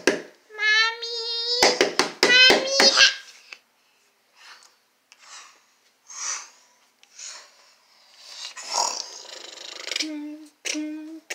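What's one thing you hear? A plush toy squeaks in high, wavering tones as hands squeeze it.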